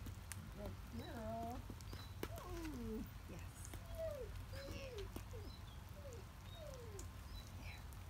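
A small dog whines in high, sliding cries.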